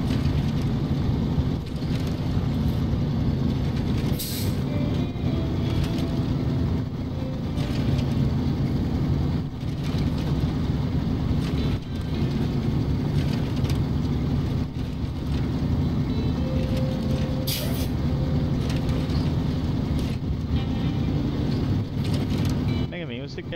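A truck's diesel engine rumbles steadily.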